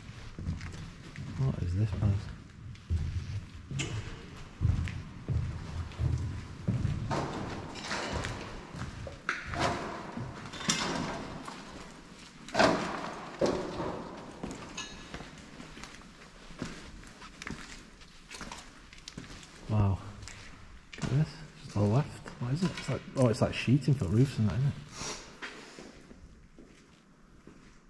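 Footsteps crunch over debris on the floor.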